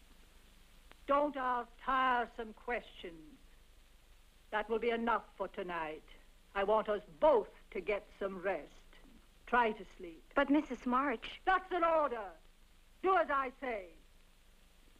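A young woman speaks quietly and tensely, close by.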